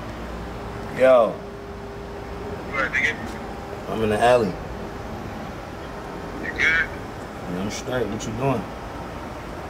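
A man speaks into a phone in short bursts, close by.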